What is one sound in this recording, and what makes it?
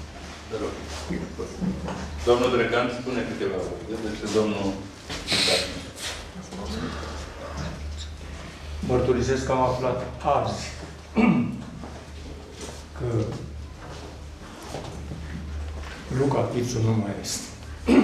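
An elderly man speaks with animation to an audience.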